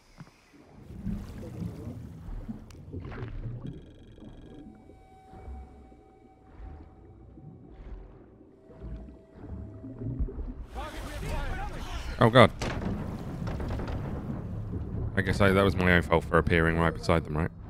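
Water swirls and bubbles around a swimmer moving underwater.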